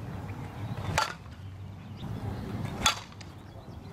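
A bat strikes a softball off a tee with a sharp crack.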